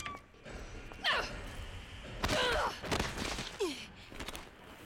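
A young woman cries out in pain.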